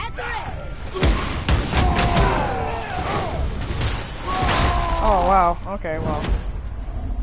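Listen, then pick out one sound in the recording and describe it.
An axe strikes and shatters a stone creature with a loud crunch.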